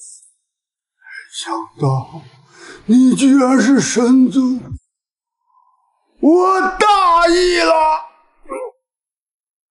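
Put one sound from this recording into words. A middle-aged man speaks in pain and alarm, gasping.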